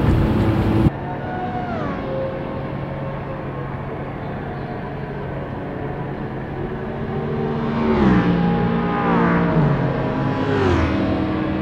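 A racing car engine drones steadily, its pitch dropping with each gear change.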